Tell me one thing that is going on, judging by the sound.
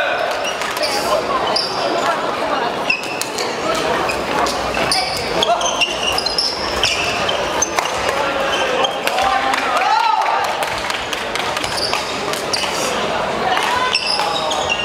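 A crowd murmurs and calls out in a large echoing hall.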